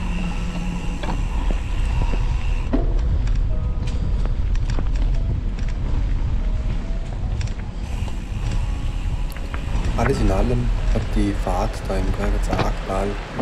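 Tyres crunch over dirt and loose stones.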